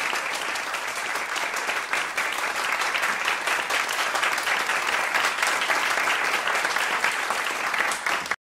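A crowd applauds steadily in an echoing hall.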